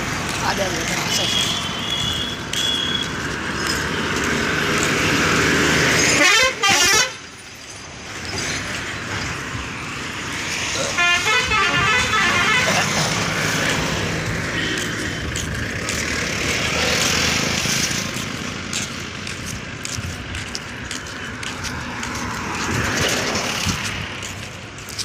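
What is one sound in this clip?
Traffic rushes past close by on a road outdoors.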